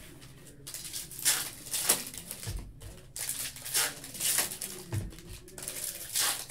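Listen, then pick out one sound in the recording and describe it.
Foil card packs crinkle as hands handle them.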